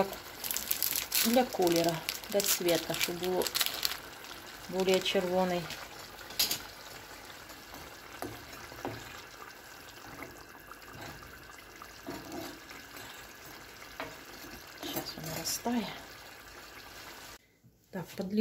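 Sauce bubbles and simmers steadily in a pan.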